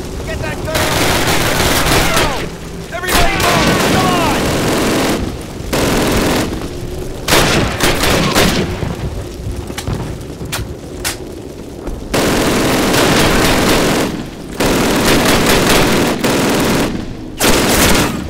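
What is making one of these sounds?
A rifle fires loud, sharp shots amid ongoing gunfire.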